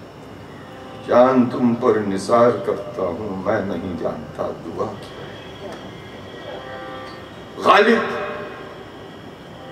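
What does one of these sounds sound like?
An elderly man sings into a microphone.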